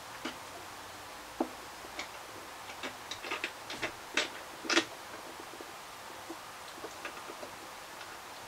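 Small plastic pipe pieces click and clack against a hard surface.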